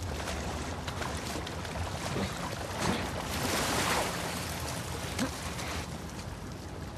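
Water sloshes and splashes as someone wades through it.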